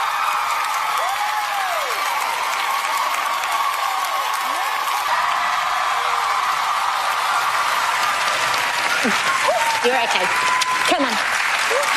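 People in a crowd whistle shrilly.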